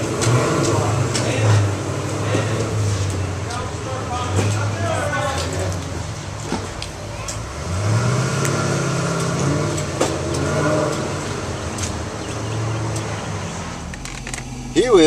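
A car engine rumbles unevenly at idle nearby.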